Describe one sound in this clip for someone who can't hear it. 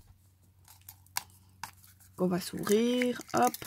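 A plastic capsule clicks as it is pried open.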